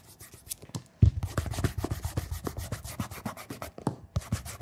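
Hands rub and brush over leather.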